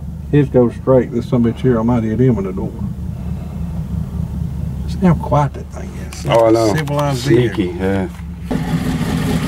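A man talks calmly from close by.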